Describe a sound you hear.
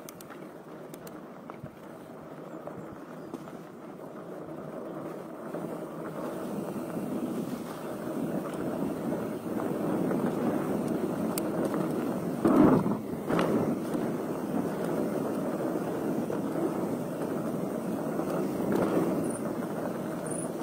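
Bicycle tyres roll and rustle over a dirt trail.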